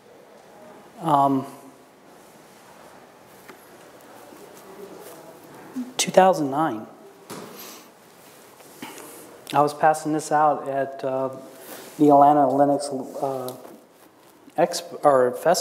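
A middle-aged man speaks through a microphone, calmly explaining.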